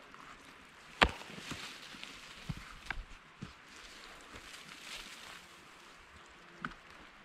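Compost tumbles out of a plastic tub.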